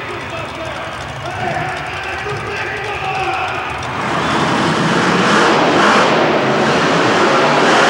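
A monster truck engine roars loudly in a large echoing arena.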